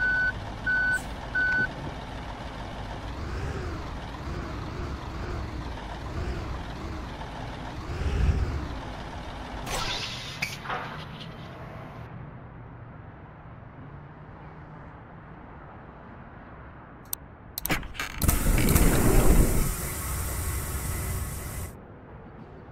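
A bus engine idles with a low rumble.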